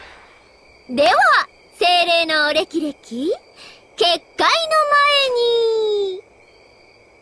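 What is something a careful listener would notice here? A young woman speaks theatrically with animation.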